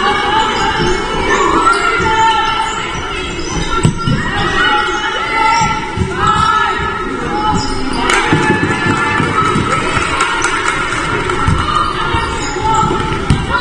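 Young women players call out to each other across the hall.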